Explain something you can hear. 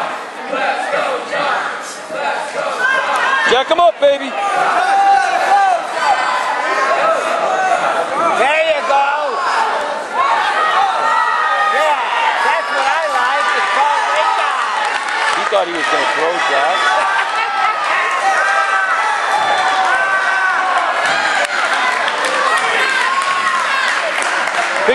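Spectators shout encouragement in an echoing gym.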